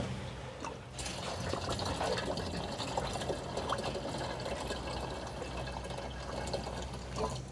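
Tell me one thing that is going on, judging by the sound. Fuel trickles from a can into a tank.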